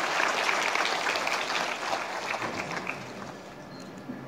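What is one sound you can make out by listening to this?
Applause rings out in a large hall.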